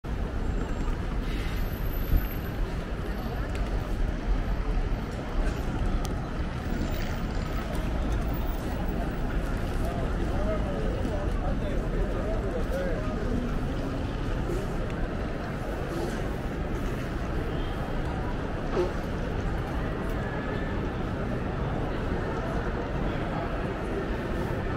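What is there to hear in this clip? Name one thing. A crowd murmurs in a busy open space.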